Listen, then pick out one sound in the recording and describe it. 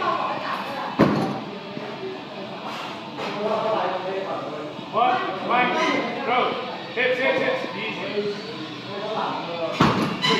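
A loaded barbell thuds down onto the floor.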